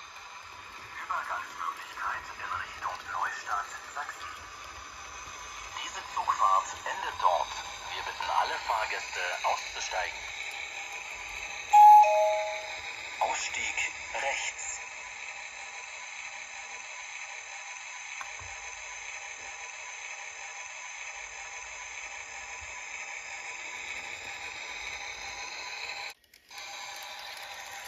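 A model train rolls along the track with a steady electric whir.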